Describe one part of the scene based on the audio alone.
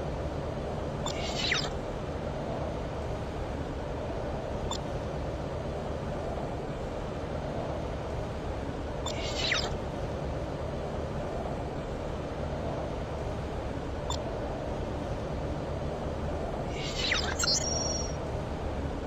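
Short swooshing interface sounds play as menus open and close.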